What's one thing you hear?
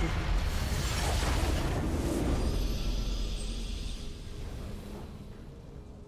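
A loud magical explosion booms and fades away.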